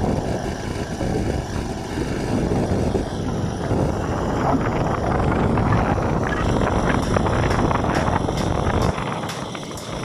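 A petrol generator drones steadily close by.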